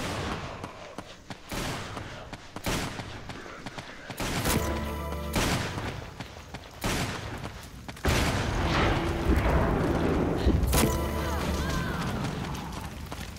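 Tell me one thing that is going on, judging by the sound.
Footsteps run over dirt.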